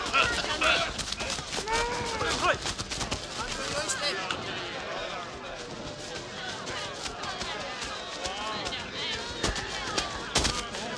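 A crowd of men and women shout and wail in distress nearby.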